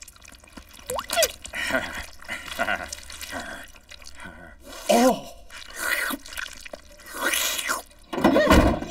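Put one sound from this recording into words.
A cartoon dog yelps and whimpers close by.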